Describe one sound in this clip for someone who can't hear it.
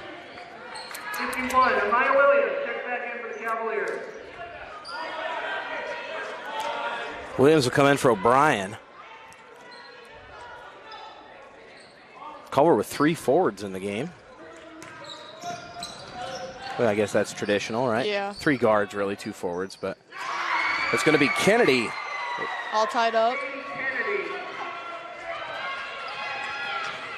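A crowd of spectators murmurs and cheers in an echoing gym.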